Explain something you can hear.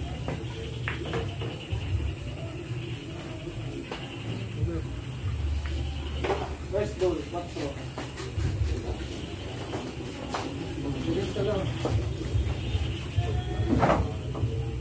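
Pool balls clack sharply against each other.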